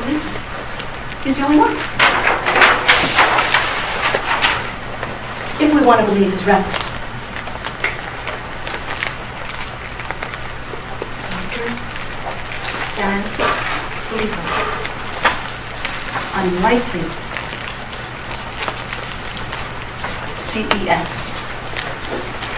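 A woman speaks calmly, heard through a microphone in a room with some echo.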